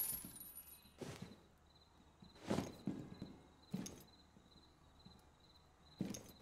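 Heavy footsteps thud slowly on a hard floor.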